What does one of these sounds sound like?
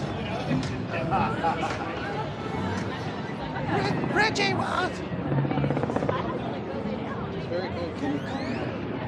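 Young men and women chatter nearby outdoors.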